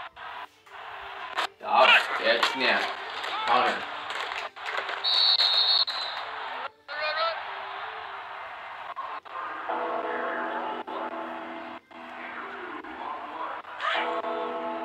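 A crowd cheers and roars in a large stadium.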